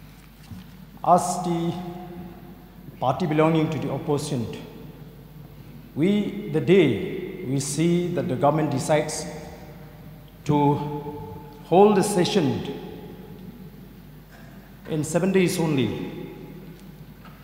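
A middle-aged man speaks steadily into a microphone, in short bursts with pauses.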